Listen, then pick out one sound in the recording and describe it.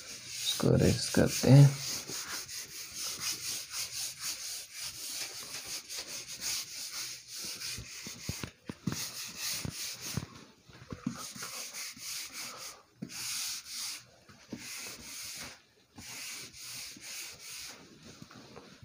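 A duster rubs and squeaks across a whiteboard.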